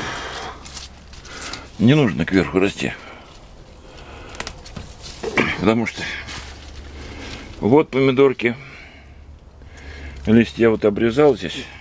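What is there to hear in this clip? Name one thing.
Leaves rustle as a hand brushes through a plant.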